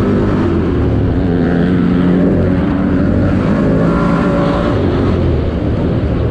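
A dirt bike engine revs loudly up close.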